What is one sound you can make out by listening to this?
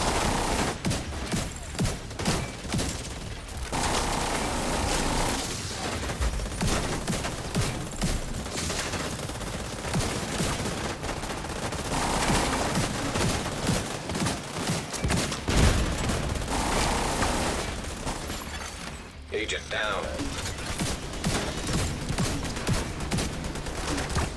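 Rifles fire in rapid bursts, with sharp cracks and thuds.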